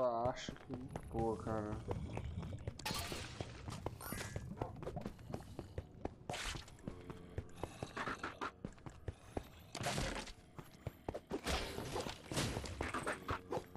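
Sword blows clash and strike in quick bursts.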